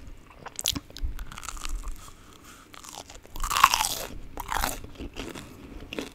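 A young woman chews food close to a microphone with wet, sticky mouth sounds.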